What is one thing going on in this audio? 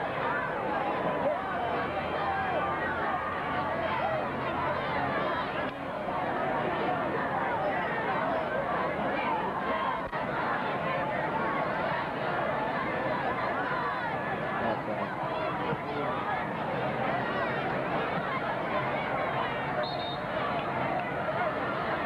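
A crowd of spectators chatters and cheers loudly outdoors.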